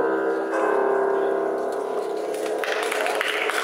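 An electric keyboard plays a sustained chord.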